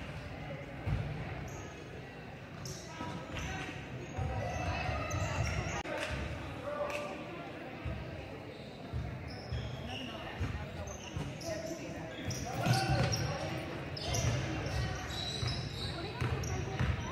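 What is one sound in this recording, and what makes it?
Sneakers squeak on a wooden gym floor in a large echoing hall.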